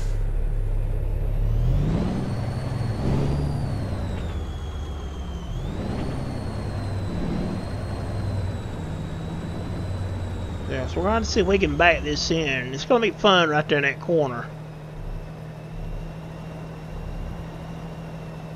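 A truck engine rumbles low as the truck slowly reverses.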